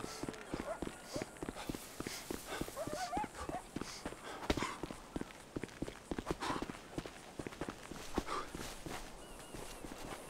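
Footsteps thud quickly on a dirt path as a man runs.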